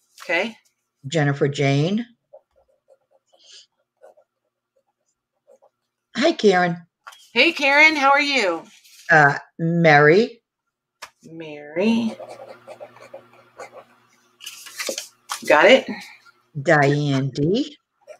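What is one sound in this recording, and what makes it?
Cloth rustles softly as a hand smooths and moves it.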